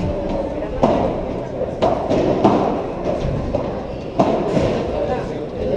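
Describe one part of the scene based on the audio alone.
Rackets strike a ball with sharp pops that echo in a large hall.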